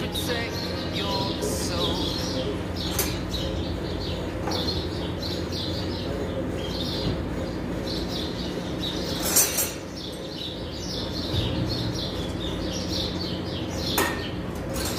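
A wrench clinks and ratchets against engine metal.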